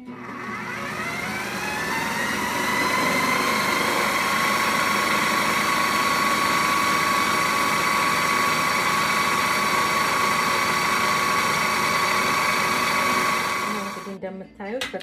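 A food processor motor whirs, spinning up and then running steadily before stopping.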